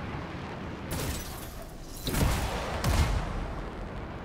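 A thruster blasts in a sudden boost.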